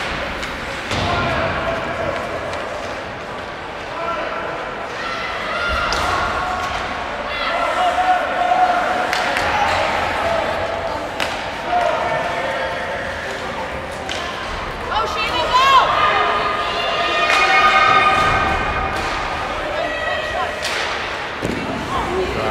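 Sticks clack against a puck.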